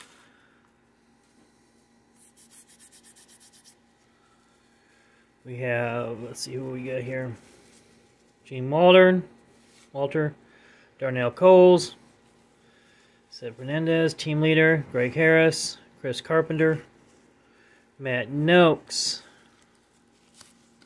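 Cardboard trading cards are leafed through by hand.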